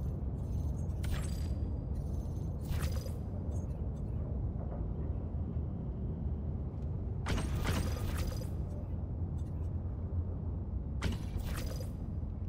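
Game menu buttons click as options are chosen.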